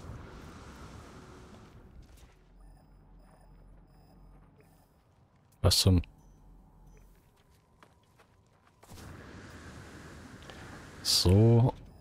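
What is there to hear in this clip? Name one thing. Footsteps crunch over soft ground.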